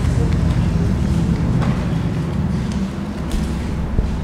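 Papers rustle close by.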